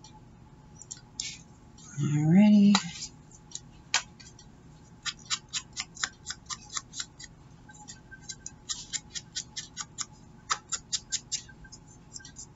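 Paper rustles and crinkles softly between fingers.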